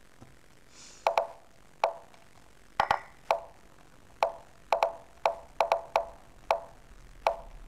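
Short sharp clicks sound from a computer chess game as pieces move.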